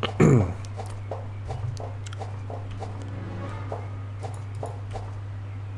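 Footsteps clank on metal ladder rungs in a steady rhythm.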